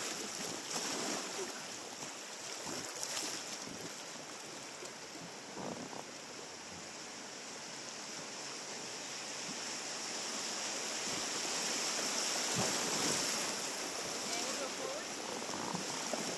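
Paddles splash in the water.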